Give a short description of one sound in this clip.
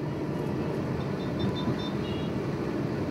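Horns toot briefly in traffic.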